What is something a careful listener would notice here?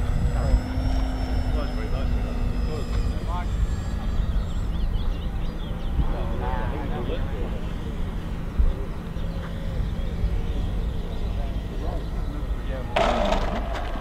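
A model airplane engine buzzes in the air and fades as it passes.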